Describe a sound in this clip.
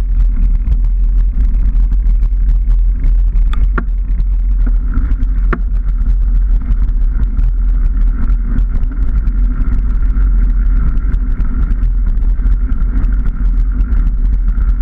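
Tyres rumble and bump over a rough dirt track.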